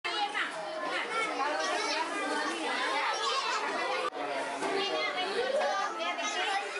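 A crowd of young children chatter and call out close by.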